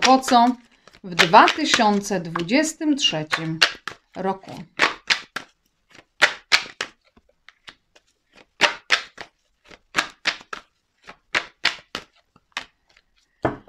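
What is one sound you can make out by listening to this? Cards riffle and flick as a deck is shuffled.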